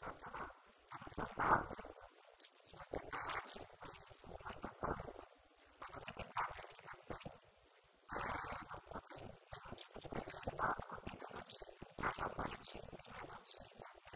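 A young woman speaks calmly into a microphone, heard through a loudspeaker in an echoing room.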